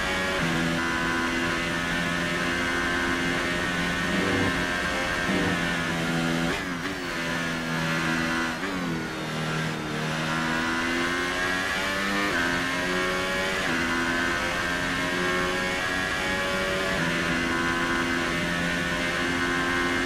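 A racing car engine screams at high revs, dropping in pitch as it slows for corners and rising again as it speeds up.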